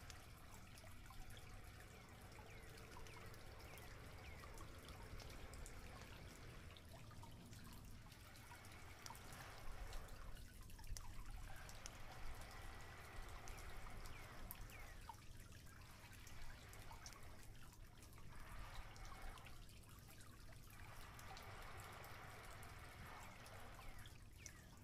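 A small campfire crackles outdoors.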